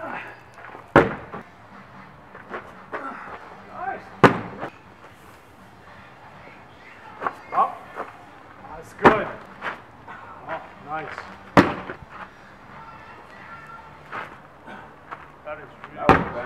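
A heavy ball thuds onto the ground.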